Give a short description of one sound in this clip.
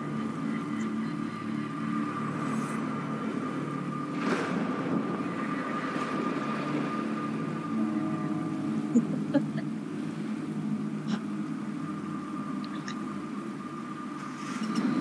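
Rain falls steadily on water.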